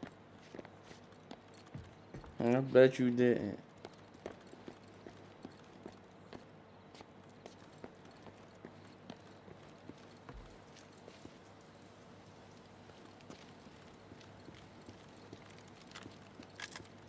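Footsteps walk steadily on a hard floor and gravel.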